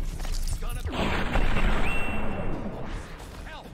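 A pistol fires with a loud bang.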